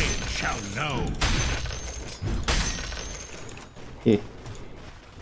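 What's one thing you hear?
Game spells crackle and clash during a fight.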